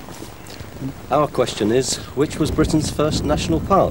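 A middle-aged man speaks calmly close by, outdoors.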